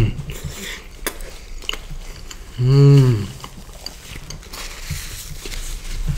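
Paper wrappers rustle.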